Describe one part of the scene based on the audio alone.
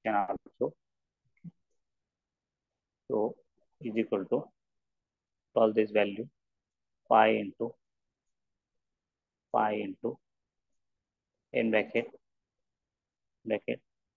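A man speaks calmly into a microphone in short phrases with pauses, as if explaining.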